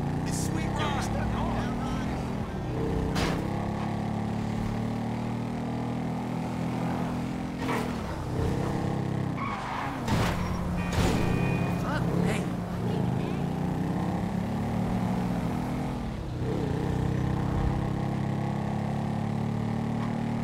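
A motorcycle engine hums steadily and rises and falls in pitch as it speeds up and shifts gears.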